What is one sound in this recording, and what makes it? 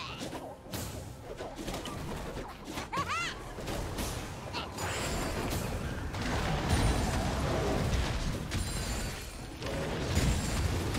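Game spells whoosh and blast with crackling hits.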